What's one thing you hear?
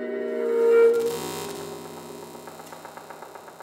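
A synthesizer plays a soft, rippling pattern.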